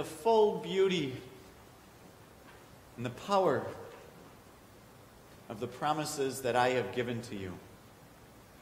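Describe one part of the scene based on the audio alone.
A man speaks calmly and clearly in a room with slight echo.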